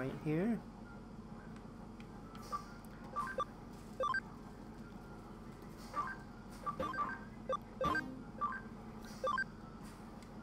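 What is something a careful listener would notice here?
Short electronic menu blips chime one after another.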